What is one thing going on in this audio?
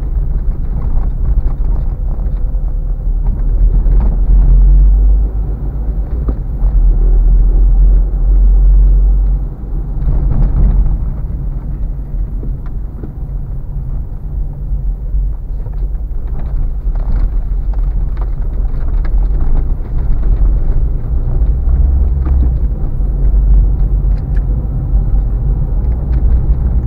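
Tyres crunch and rumble over a rough dirt road.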